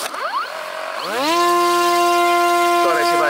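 A small electric motor whirs up to a steady high whine.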